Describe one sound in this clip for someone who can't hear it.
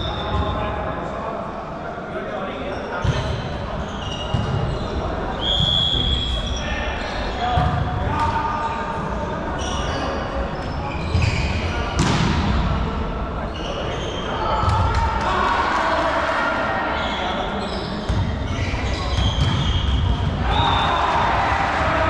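Young men talk and call out to each other in a large echoing hall.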